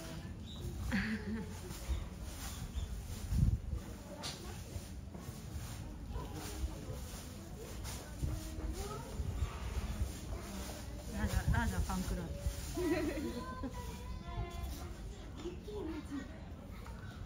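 A lion paces over dry leaves, rustling them underfoot.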